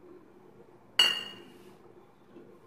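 A metal lid clinks sharply against metal and rings briefly.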